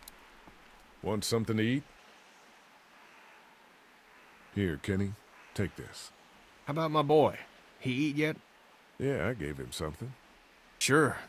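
A man speaks calmly in a deep voice.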